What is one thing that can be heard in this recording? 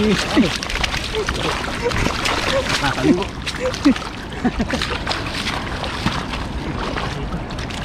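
Water splashes around boots as a man wades.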